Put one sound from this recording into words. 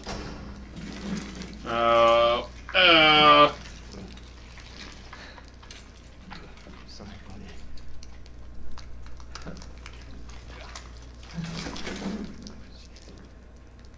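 Wet flesh squelches as a hand pushes deep into it.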